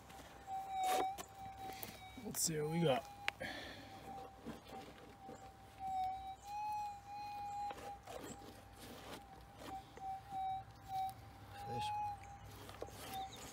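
A gloved hand scrapes and rustles through loose soil.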